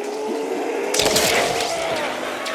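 A gun fires a loud burst.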